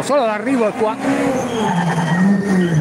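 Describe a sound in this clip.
A rally car engine roars as it approaches and revs.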